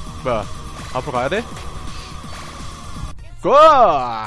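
Retro electronic game sound effects chirp and buzz.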